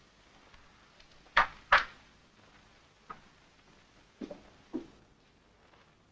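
Footsteps walk away on a hard floor.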